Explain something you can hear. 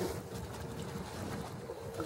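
A dog paddles and splashes through shallow water.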